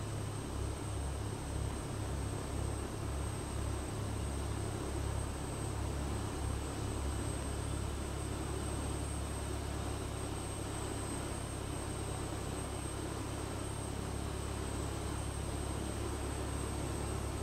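Jet engines idle with a low, steady hum.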